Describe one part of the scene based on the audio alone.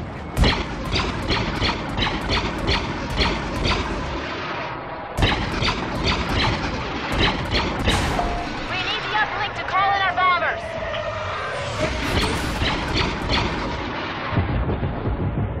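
Laser blasters fire in rapid, repeated bursts.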